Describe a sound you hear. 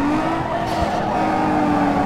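Tyres screech as a car slides around a bend.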